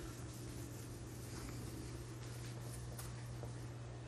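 A cloth rubs across a whiteboard.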